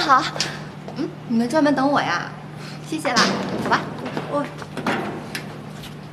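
A second young woman speaks cheerfully.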